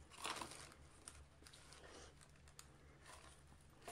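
Plastic wrapping crinkles as it is pulled off.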